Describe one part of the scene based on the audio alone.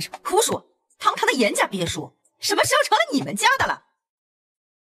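A middle-aged woman speaks sharply and scornfully nearby.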